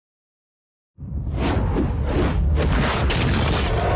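A large beast roars.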